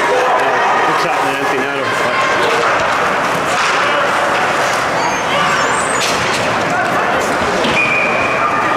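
A crowd of spectators cheers and shouts in a large echoing arena.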